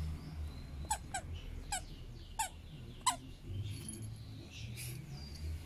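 A dog growls low while tugging at a toy.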